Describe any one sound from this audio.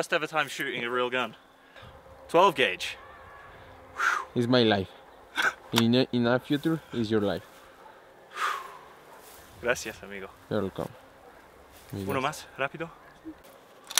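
A man speaks calmly and clearly to a listener nearby, outdoors.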